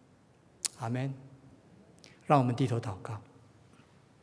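An older man speaks calmly and slowly through a microphone.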